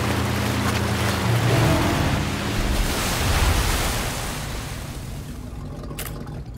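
Water sprays and splashes loudly.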